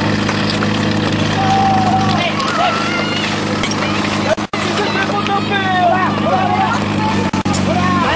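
A crowd of people shout and cheer outdoors.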